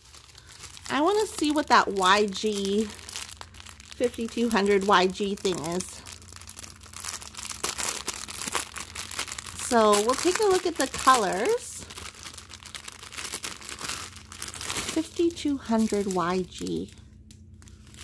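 A plastic bag crinkles and rustles as hands handle it.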